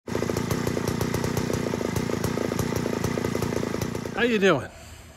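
A chainsaw engine runs fast with a rattling buzz.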